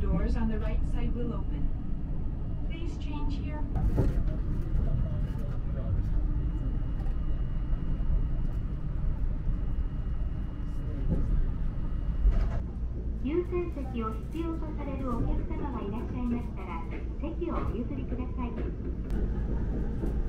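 A train rumbles and hums steadily as it rolls along a track.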